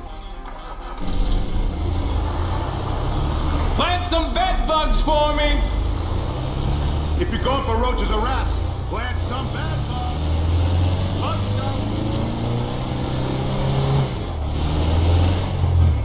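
A van engine rumbles as the van drives off.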